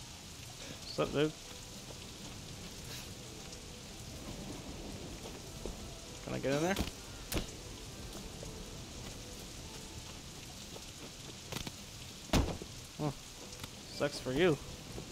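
A man speaks in short bursts into a microphone.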